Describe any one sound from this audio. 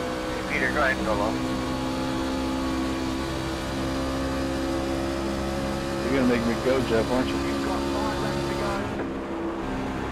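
A V8 NASCAR race truck engine roars at full throttle.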